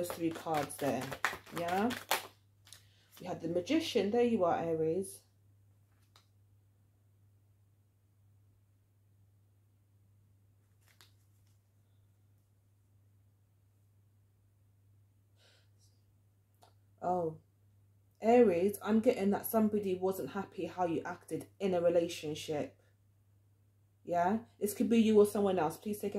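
A woman speaks calmly and clearly into a close microphone, pausing now and then.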